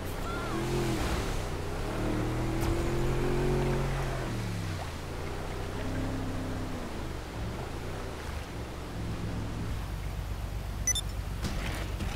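A motorboat engine roars and revs, rising and falling in pitch.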